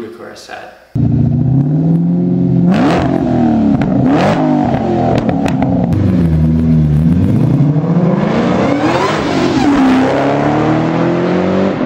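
A car engine roars, revving up and down.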